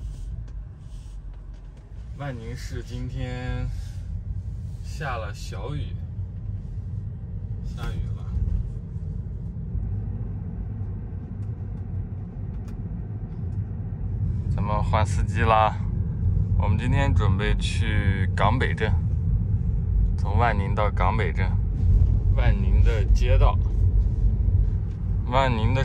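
A car hums and rumbles steadily as it drives along the road.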